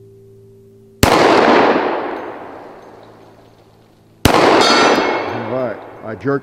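Bullets strike steel plates with sharp, loud bangs that echo outdoors.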